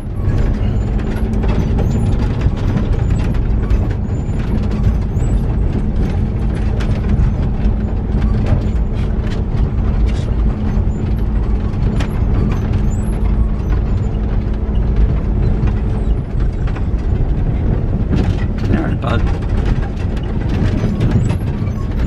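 Tyres crunch and rattle over a rough gravel track.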